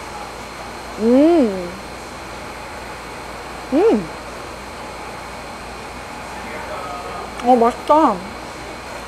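A young woman hums and murmurs with pleasure close by.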